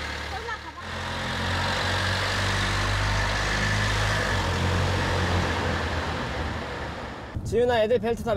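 A car engine hums as a vehicle drives through an echoing garage.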